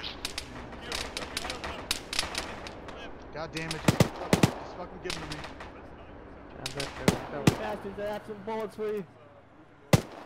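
Gunshots crack sharply in short bursts.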